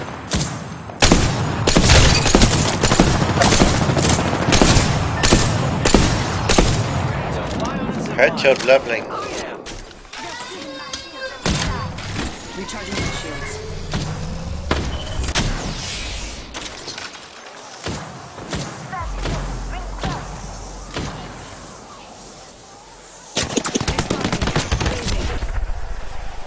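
Rapid gunshots crack loudly in bursts.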